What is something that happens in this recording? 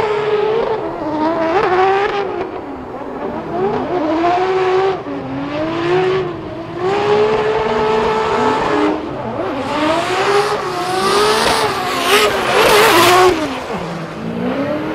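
A car engine revs hard and wails up and down in pitch.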